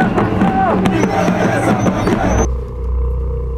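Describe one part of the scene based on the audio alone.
A crowd chants loudly.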